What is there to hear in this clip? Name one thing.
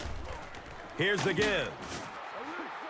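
Padded players thud together in a tackle.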